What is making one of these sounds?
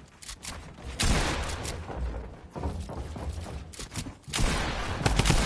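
Video game building pieces snap into place with sharp clacks.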